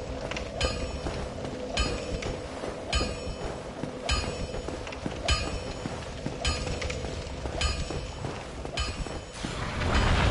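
Heavy armoured footsteps clank steadily on stone.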